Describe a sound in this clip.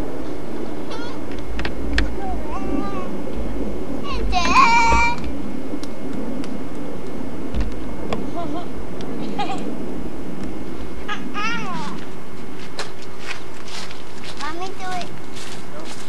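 Young children babble and squeal nearby outdoors.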